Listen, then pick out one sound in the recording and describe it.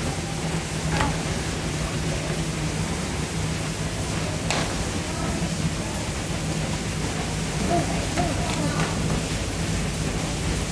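A young girl slaps her hands against thick glass.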